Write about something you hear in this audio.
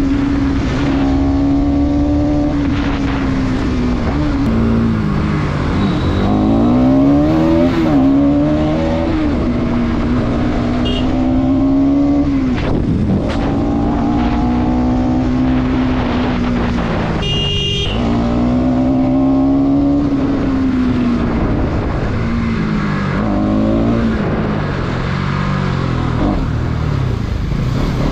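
Wind rushes past close by.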